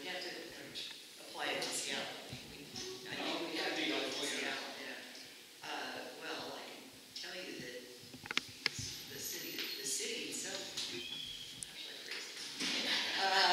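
An older woman talks calmly nearby.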